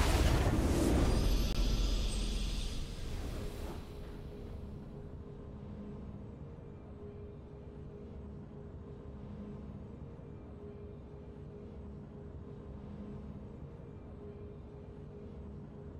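A soft victory tune plays.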